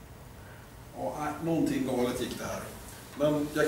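A man speaks to an audience in a room.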